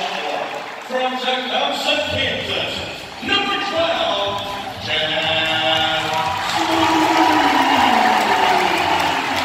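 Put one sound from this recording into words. A group of voices sings together through loudspeakers in a large echoing arena.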